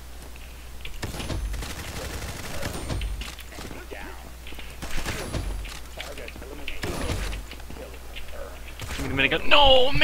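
A sniper rifle fires loud single shots that echo.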